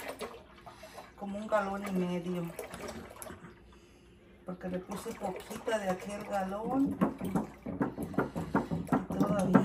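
Milk pours and splashes into a pot.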